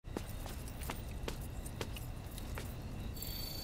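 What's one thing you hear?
Footsteps climb stone steps outdoors.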